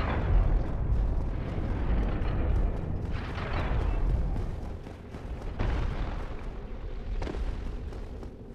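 Armoured footsteps clank on stone in an echoing passage.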